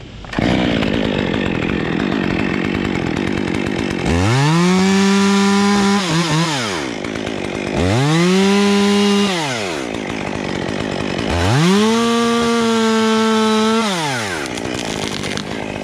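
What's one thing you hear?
A chainsaw engine idles with a steady rattle.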